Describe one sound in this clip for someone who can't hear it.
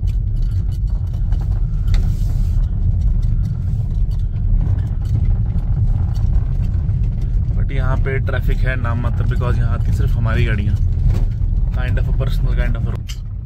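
A car engine rumbles steadily as the car drives along a rough road.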